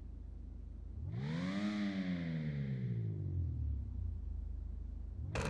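A sports car engine revs up and then winds back down.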